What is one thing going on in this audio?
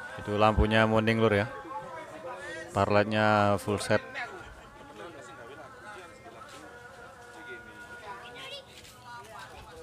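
A crowd of men chatters quietly nearby.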